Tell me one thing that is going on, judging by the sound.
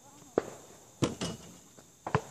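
A basketball clangs against a rim and backboard.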